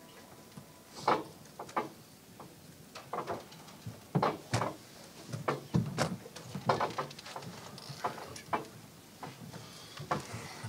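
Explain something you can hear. Footsteps thud and knock close by on a hard floor.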